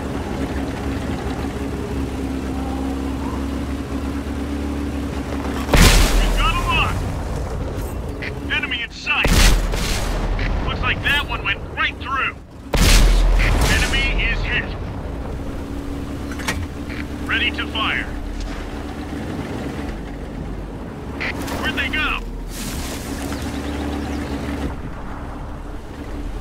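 A tank engine rumbles as the tank drives.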